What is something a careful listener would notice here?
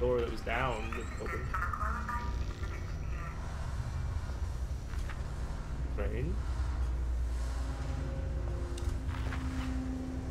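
A motion tracker beeps electronically.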